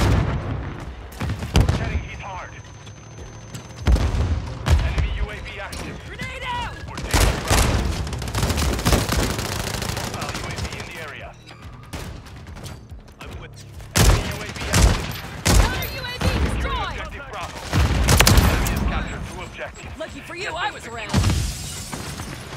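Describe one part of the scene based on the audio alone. Gunfire bursts out in loud, sharp volleys.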